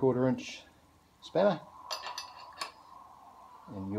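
A metal wrench clicks against a bolt.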